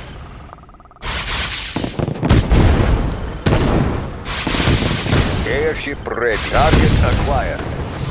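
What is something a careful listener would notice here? Missiles streak down and explode with loud booming blasts.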